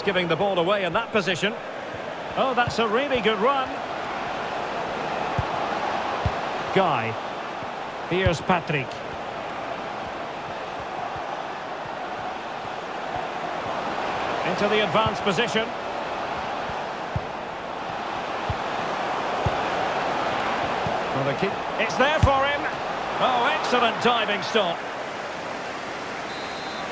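A large crowd murmurs and cheers steadily in a stadium.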